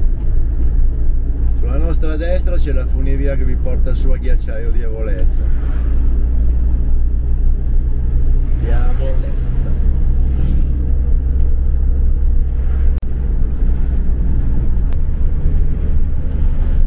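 A vehicle's engine and tyres rumble steadily on the road.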